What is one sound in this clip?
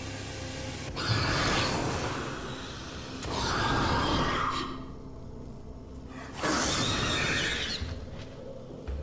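A flamethrower roars in loud bursts of fire.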